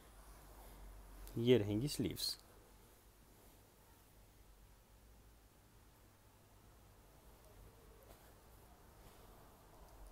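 A hand rustles and smooths silky fabric.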